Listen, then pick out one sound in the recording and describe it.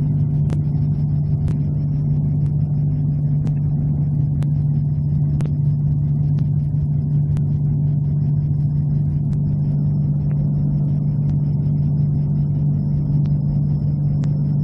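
Wind rushes past an aircraft canopy.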